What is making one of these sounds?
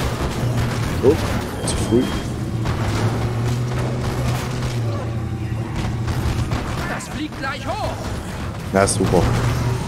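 Zombies groan and moan.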